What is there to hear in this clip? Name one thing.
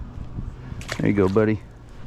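A small fish splashes into the water.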